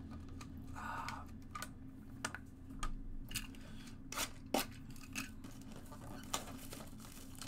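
A plastic wrapper crinkles as it is handled.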